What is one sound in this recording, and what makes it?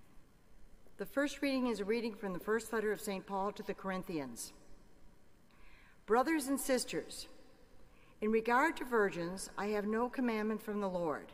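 An elderly woman reads out through a microphone in a large echoing hall.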